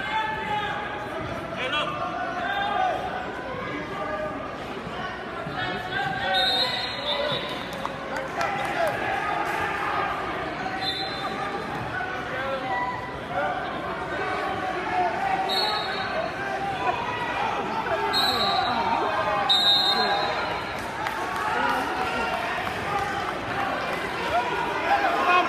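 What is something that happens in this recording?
A crowd chatters and cheers loudly in a large echoing gym.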